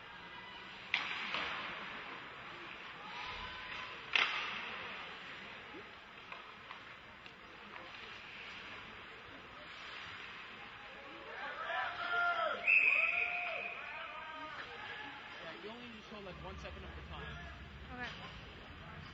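Hockey sticks clack sharply against the puck.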